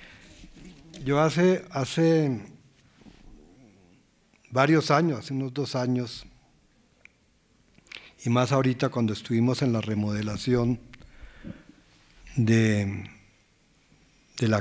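An elderly man speaks slowly into a microphone, pausing between phrases.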